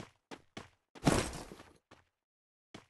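A loud thud lands with a short rumble.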